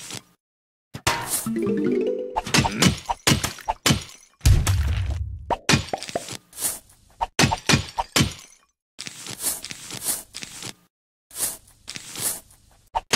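Game sound effects chime and pop as vases break.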